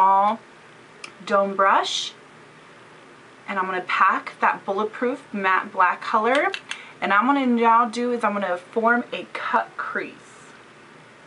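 A woman speaks calmly, close to a microphone.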